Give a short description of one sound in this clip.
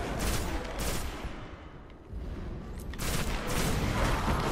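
A gun fires bursts of shots.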